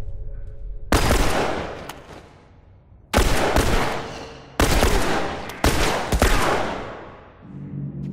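Loud gunshots fire several times and echo.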